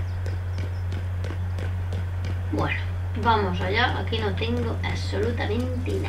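Footsteps run quickly over pavement.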